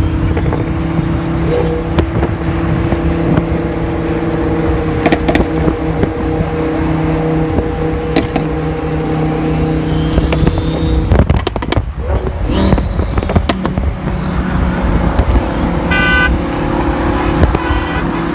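A sports car engine roars steadily nearby on a highway.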